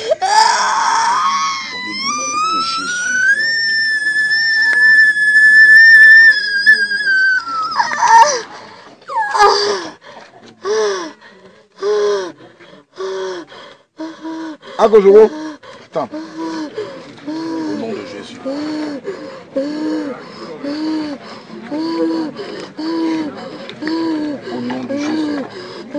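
A young woman wails and moans in distress close by.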